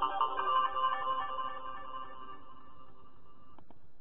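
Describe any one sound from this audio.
A short musical jingle plays through a small speaker and fades away.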